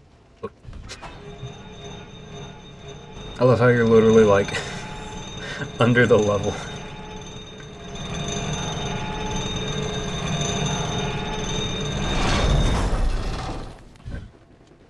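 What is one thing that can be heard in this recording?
A metal cage lift rumbles and creaks as it moves.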